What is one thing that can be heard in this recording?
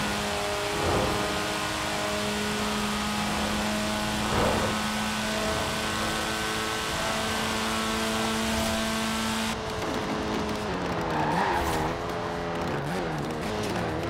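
A car engine drones at high speed, steady and then rising and falling in pitch as it slows.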